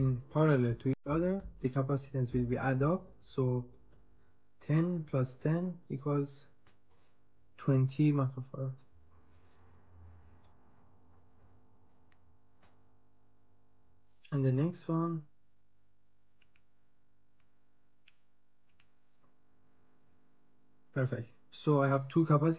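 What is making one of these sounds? A small part clicks as it is pressed into a plastic board.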